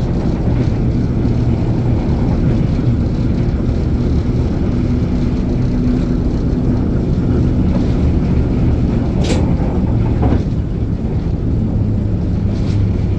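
A train engine rumbles steadily close by.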